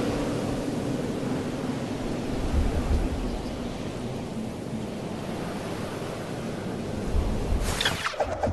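Wind rushes loudly past a falling skydiver.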